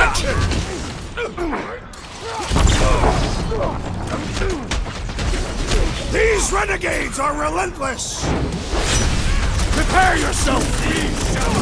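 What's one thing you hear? Energy weapons fire in rapid bursts.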